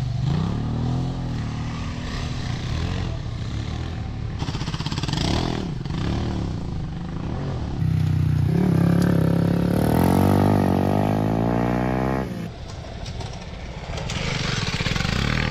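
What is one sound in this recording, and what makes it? A motorbike engine revs and roars as it speeds past over dirt.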